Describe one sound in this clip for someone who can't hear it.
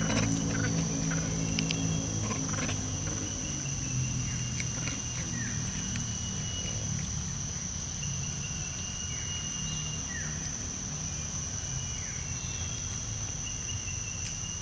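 Monkeys chew food with soft smacking sounds.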